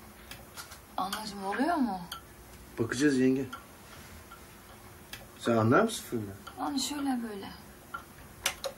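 A man speaks quietly and closely.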